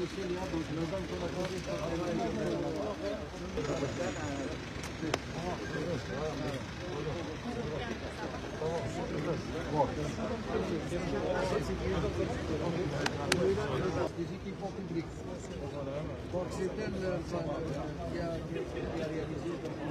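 Several men talk and greet each other at close range.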